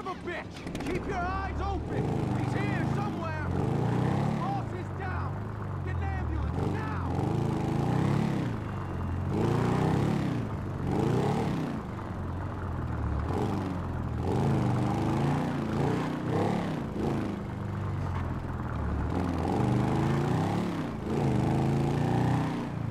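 A motorcycle engine revs up and down as the bike rides along.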